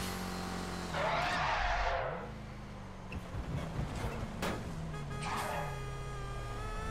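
Tyres screech on the road.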